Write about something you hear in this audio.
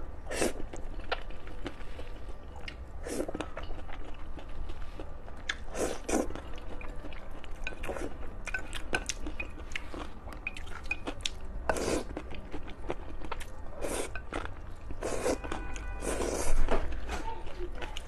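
A young woman slurps noodles loudly and close up.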